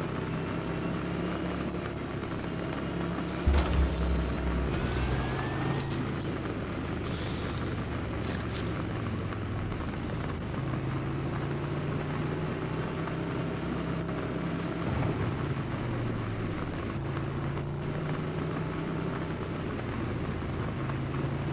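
A motorbike engine roars steadily as the bike speeds along.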